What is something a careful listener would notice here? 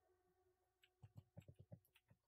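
Hooves clop on hard ground.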